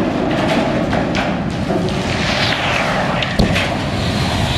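A huge metal water tower crashes to the ground with a loud boom.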